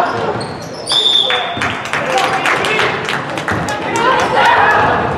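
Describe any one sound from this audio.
A basketball bounces on the court in a large echoing hall.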